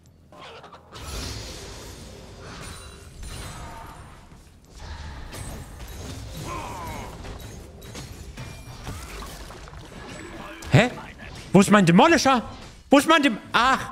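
Game battle effects clash and whoosh.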